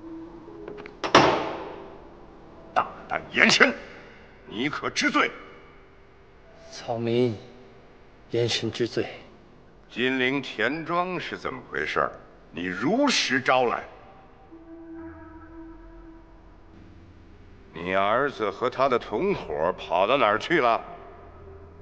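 A middle-aged man speaks sternly and loudly.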